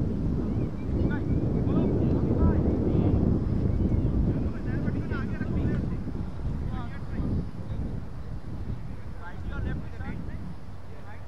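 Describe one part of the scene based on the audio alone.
Men call out to each other in the distance outdoors.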